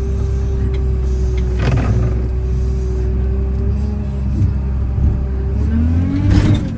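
A loader's hydraulics whine as the bucket rises.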